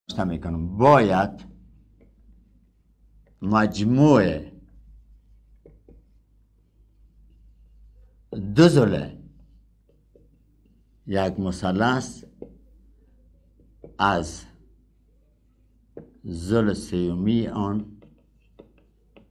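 A middle-aged man speaks calmly and slowly in short phrases.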